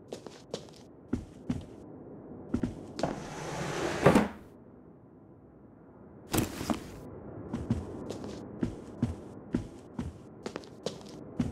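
Footsteps thud on a wooden floor in a large echoing hall.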